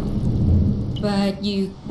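A huge creature lets out a loud, wavering cry.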